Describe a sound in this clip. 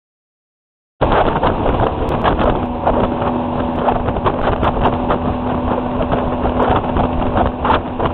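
A boat engine roars at speed.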